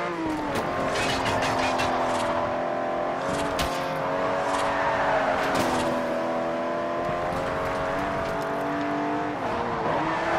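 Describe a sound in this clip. A racing car engine roars at high revs, shifting gears.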